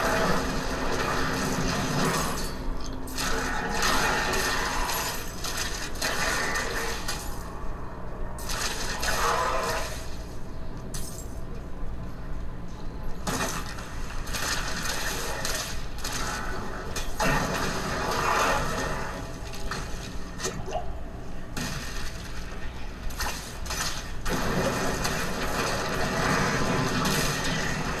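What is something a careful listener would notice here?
Fire blasts roar and crackle in a game.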